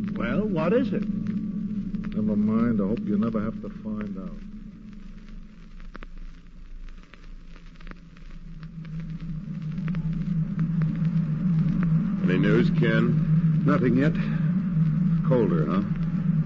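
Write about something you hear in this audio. A man speaks through an old microphone, reading out lines.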